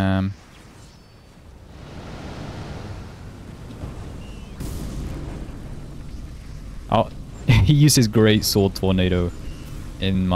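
Magical blasts burst and roar.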